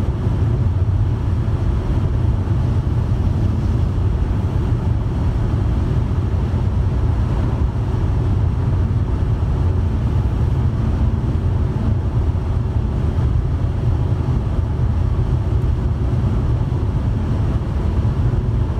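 A car's engine and tyres rumble steadily from inside as it drives.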